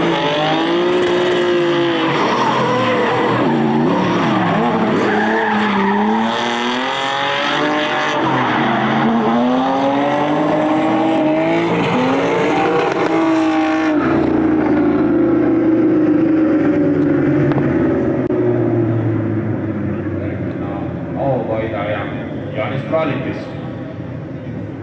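Car engines roar and rev hard, rising and falling in pitch.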